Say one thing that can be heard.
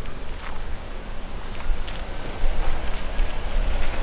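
A pickup truck drives past close by.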